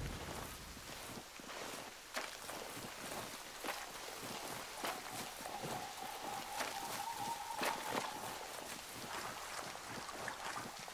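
A large fire roars and crackles nearby.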